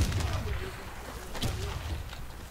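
A rifle fires quick shots.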